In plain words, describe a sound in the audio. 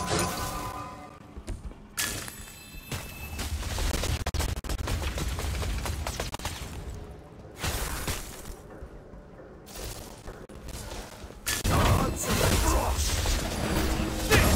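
Magic spells whoosh and crackle in a video game.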